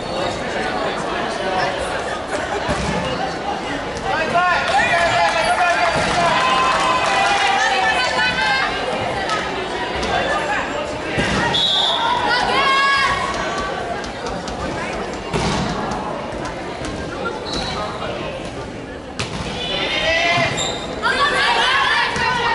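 Young women call out and chatter in a large echoing hall.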